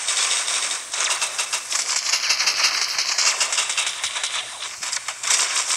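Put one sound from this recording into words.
Rapid electronic gunshots fire in quick bursts.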